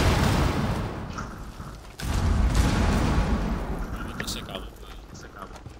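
A heavy blast rumbles and slowly fades.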